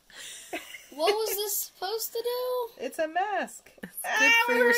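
A young woman squeals and laughs in pain close by.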